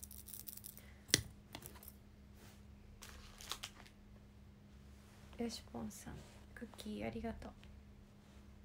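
A young woman speaks softly and quietly, close to a microphone.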